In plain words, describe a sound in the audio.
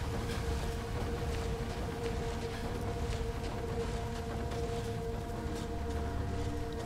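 Footsteps tread slowly over soft ground.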